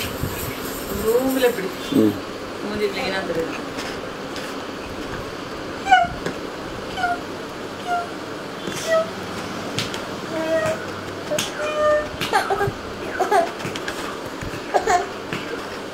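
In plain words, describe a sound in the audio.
A toddler babbles and coos close by.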